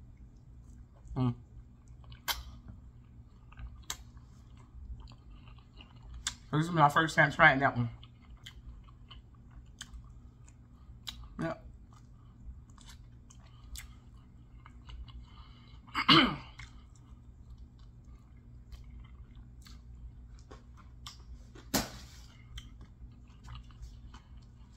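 A woman eats crunchy food close by, with soft chewing and crunching.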